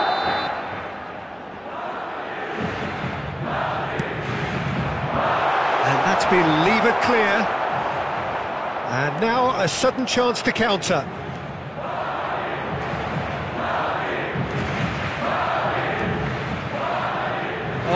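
A stadium crowd murmurs and roars in the background.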